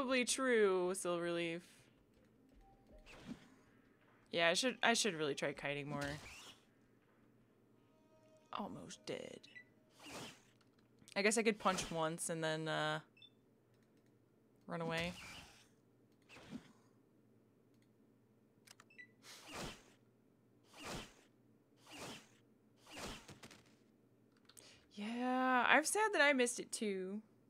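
A young woman talks with animation into a nearby microphone, in short bursts with pauses.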